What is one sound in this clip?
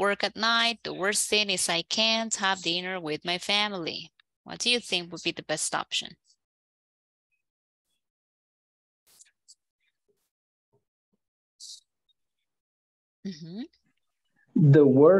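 A woman speaks calmly through an online call, clearly and at a steady pace.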